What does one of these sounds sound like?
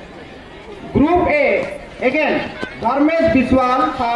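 A man speaks loudly through a microphone and loudspeakers.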